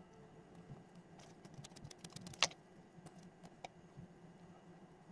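Fingers press and tap softly on dough over crinkling paper.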